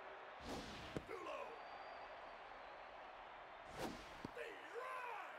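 A pitched baseball smacks into a catcher's mitt.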